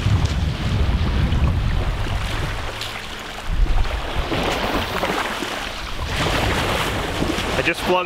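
Small waves lap against the shore.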